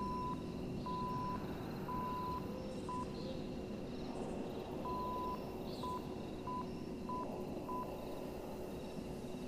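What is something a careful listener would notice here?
An old radio set hisses with steady static.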